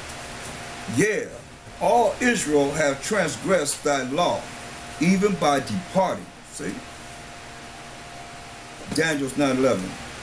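An older man speaks calmly and close to a microphone.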